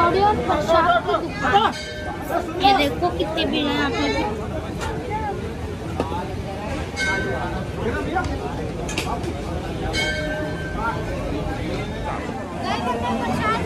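A crowd chatters and murmurs nearby outdoors.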